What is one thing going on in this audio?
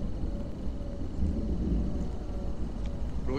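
A man speaks quietly.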